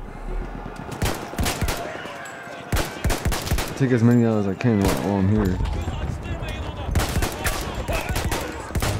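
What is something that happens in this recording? Gunshots fire in quick, sharp bursts.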